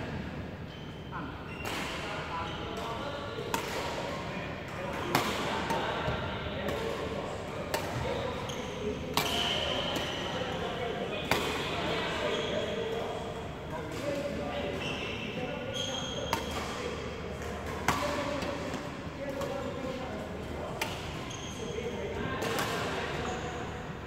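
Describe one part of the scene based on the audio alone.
Shoes squeak on a wooden court.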